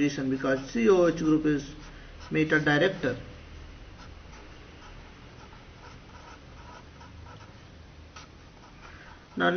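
A pen scratches softly across a writing surface.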